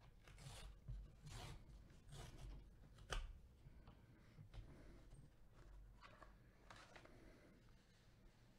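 Paper rustles and tears softly.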